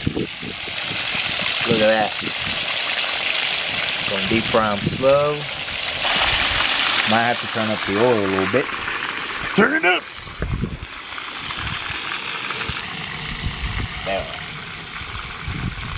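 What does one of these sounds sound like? Oil sizzles and crackles loudly in a frying pan.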